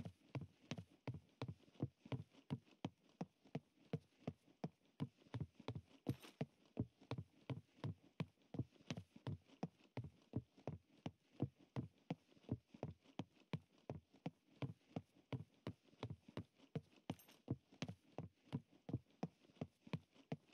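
Footsteps run quickly and steadily over hollow wooden planks.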